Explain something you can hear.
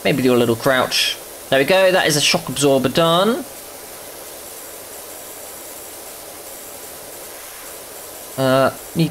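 A pressure washer sprays a steady hissing jet of water.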